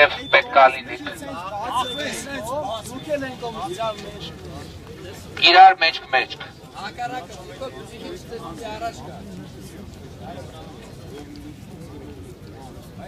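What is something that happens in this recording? A crowd of men chatters and murmurs outdoors.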